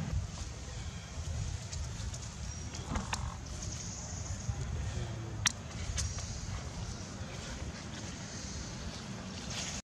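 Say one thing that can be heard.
A small monkey patters over dry, crackling leaves.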